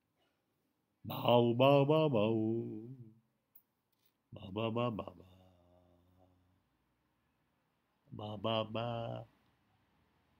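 An elderly man speaks close to the microphone in short bursts.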